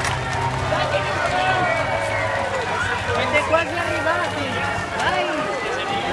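A large outdoor crowd cheers, whistles and shouts loudly.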